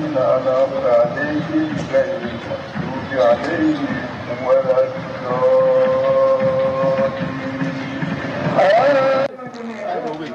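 A man chants a prayer in a long, drawn-out voice through a loudspeaker.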